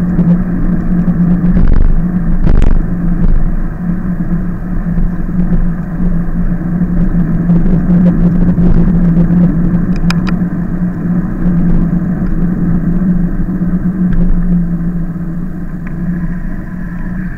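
Wind rushes steadily past while riding outdoors.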